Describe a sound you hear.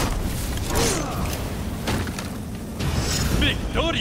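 Fire bursts out with a roaring whoosh.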